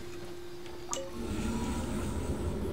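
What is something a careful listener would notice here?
A glowing portal whooshes and hums as it opens.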